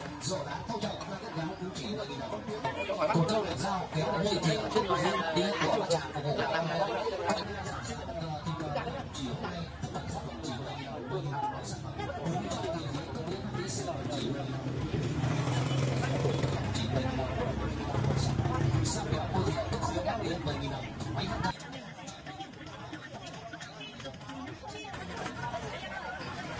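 A crowd chatters in a busy outdoor market.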